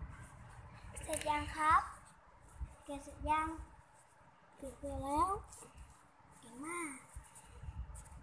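A young child speaks up close in a high voice.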